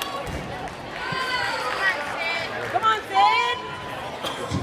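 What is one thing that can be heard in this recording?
Young girls cheer and shout with high voices.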